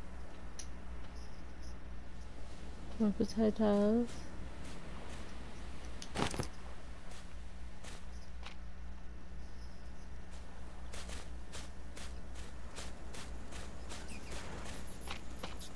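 Footsteps rustle through low undergrowth.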